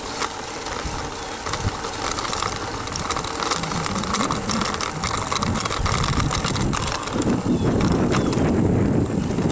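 Wind rushes over the microphone outdoors.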